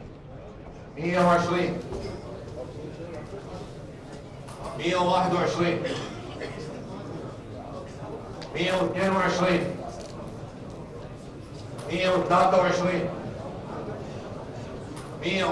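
A man calls out loudly through a microphone in short bursts, echoing in a large hall.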